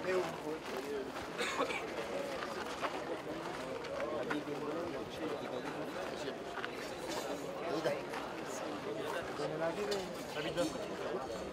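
A crowd of men chatter nearby outdoors.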